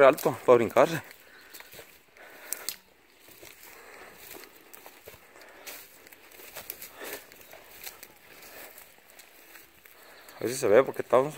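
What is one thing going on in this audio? Footsteps rustle and crunch through dry grass and weeds.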